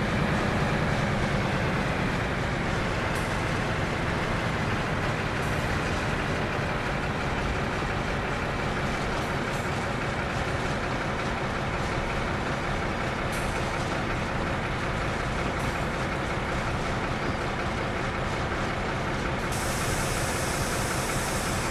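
A diesel locomotive engine rumbles steadily.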